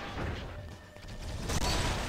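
A futuristic gun fires a shot.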